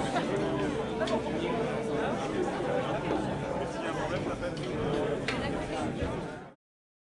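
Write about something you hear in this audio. A crowd of adults and children chatters all around, close by.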